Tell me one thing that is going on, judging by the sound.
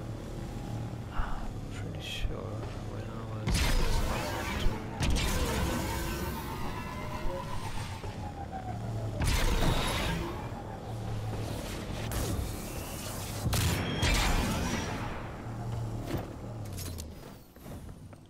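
A vehicle engine hums and roars, surging as it speeds up.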